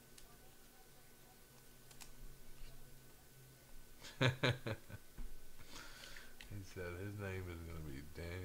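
Trading cards rustle and click as hands shuffle them.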